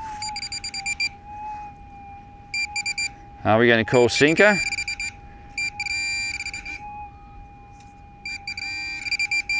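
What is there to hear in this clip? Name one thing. A metal detector chirps in quick bursts of beeps.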